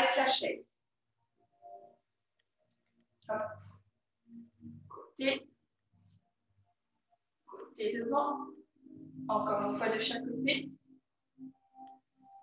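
A young woman talks calmly, close by, in short bursts.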